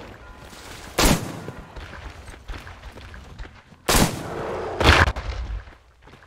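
A gun fires loud sharp shots.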